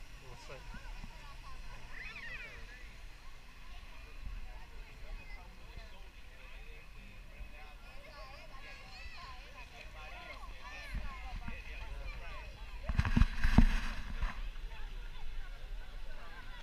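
A crowd of people chatters and calls out at a distance, outdoors.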